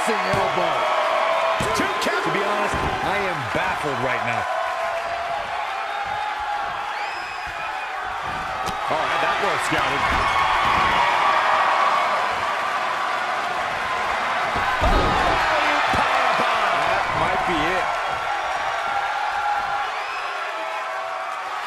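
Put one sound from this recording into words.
A large crowd cheers and chants throughout.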